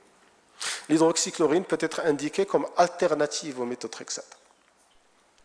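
A man speaks into a microphone in a large room, with a slight echo.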